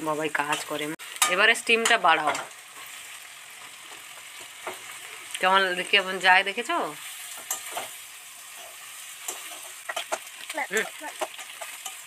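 A metal spatula scrapes and stirs onions in a pan.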